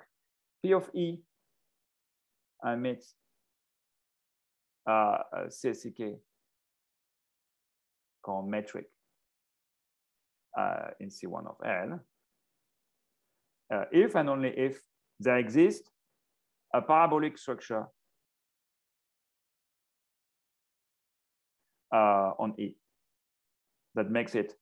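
A man speaks calmly in short phrases over an online call, with pauses between.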